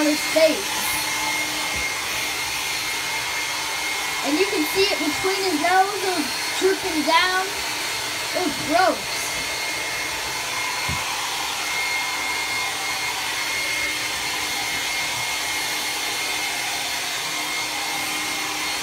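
A hair dryer blows steadily.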